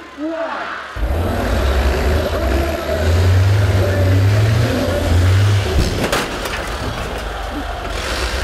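A bus engine roars loudly up close.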